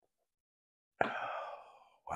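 A mug knocks down onto a table.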